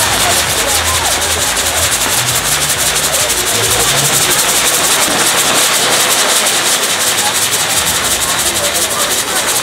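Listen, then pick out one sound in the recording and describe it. Fireworks crackle and fizz rapidly close by.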